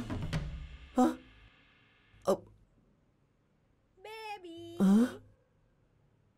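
A man speaks in a tense, hesitant voice nearby.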